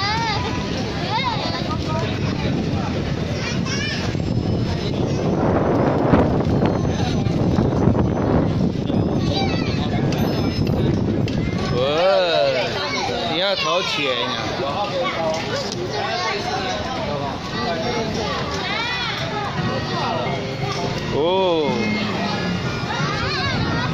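A coin-operated kiddie ride plays a tinny electronic tune.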